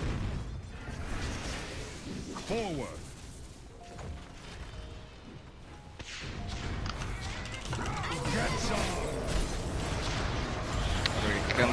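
Spell and combat effects from a video game crackle and clash.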